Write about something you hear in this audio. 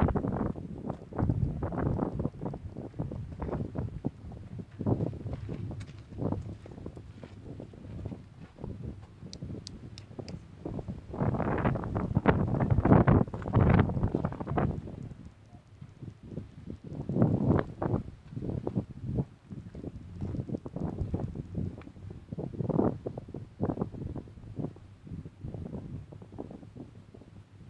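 A man talks calmly and steadily into a close microphone outdoors.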